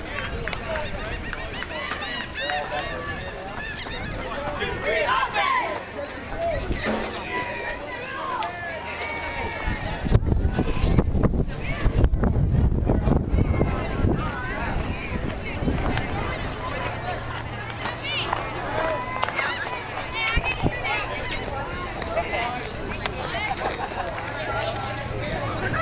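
Young ballplayers call out to each other across an open field.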